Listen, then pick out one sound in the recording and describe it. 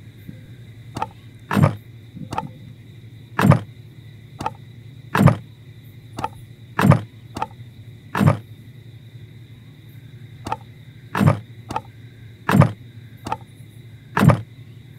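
Wooden planks knock into place with hollow thuds, each after a light click.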